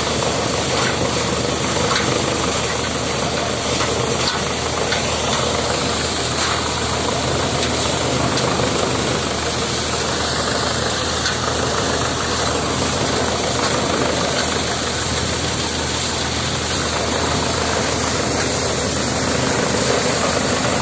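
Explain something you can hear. Straw rustles and is chopped as bundles are fed into a threshing machine.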